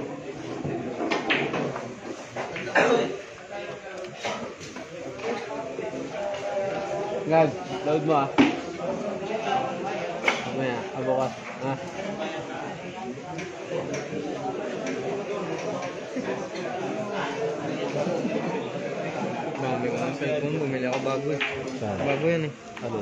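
A man talks casually nearby.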